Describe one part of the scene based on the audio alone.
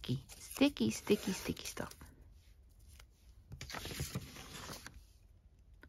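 Paper tape tears with a soft rip.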